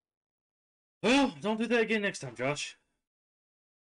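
A man talks loudly and animatedly into a microphone, close by.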